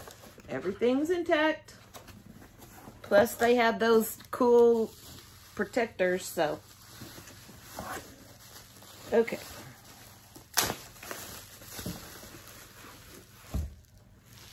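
Bubble wrap crinkles as it is pulled off.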